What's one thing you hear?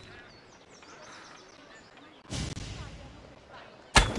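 A bow string twangs as an arrow flies.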